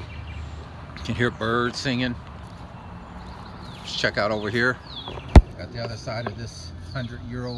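A middle-aged man speaks calmly and close to a microphone outdoors.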